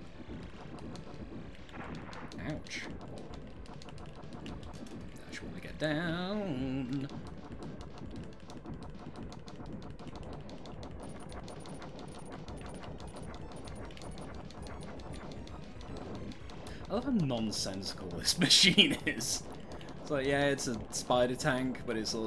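Laser shots fire in quick bursts.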